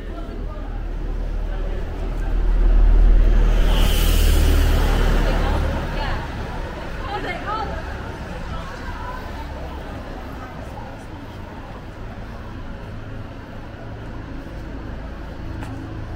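Busy street traffic hums steadily in the background.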